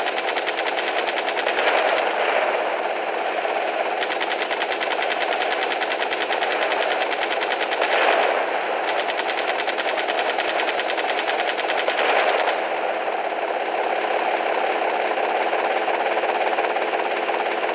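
A rapid-fire gun shoots in long, steady bursts.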